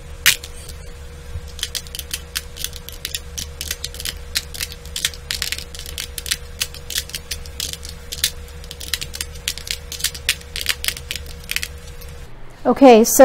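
Plastic tiles click and clack as they are picked up and set down.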